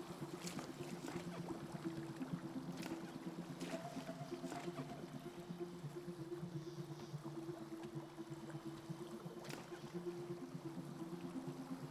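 A paddle splashes in water.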